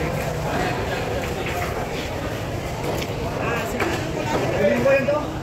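A busy crowd chatters in the background.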